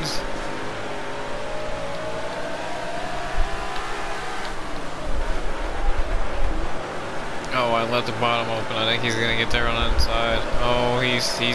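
A race car engine roars at high revs, rising and falling.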